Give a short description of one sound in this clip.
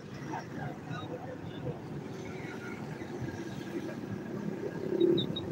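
Traffic rumbles along a busy street outdoors.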